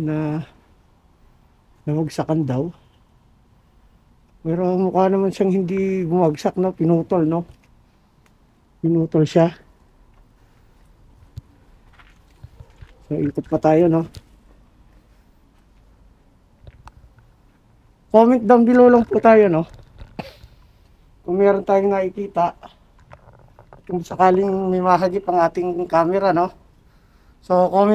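A man speaks close by in short, hushed bursts with pauses between them.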